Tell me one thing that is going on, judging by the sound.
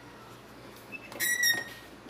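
A button on a coffee machine clicks.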